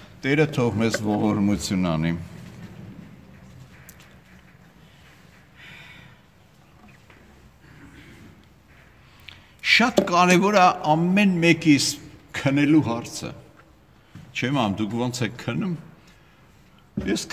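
An elderly man speaks calmly and close by, with pauses.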